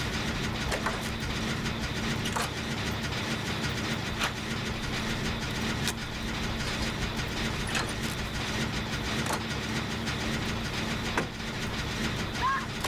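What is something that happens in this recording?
A generator rattles and hums steadily.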